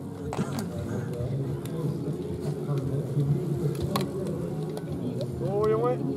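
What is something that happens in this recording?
A bicycle rolls past close by on grass.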